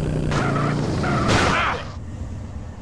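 A motorbike engine roars close by.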